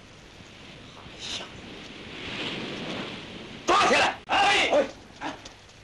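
A man calls out sharply.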